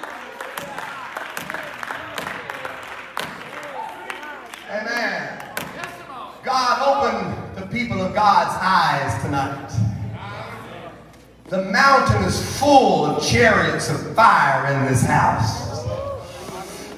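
A middle-aged man preaches passionately into a microphone, his voice ringing through a large echoing hall.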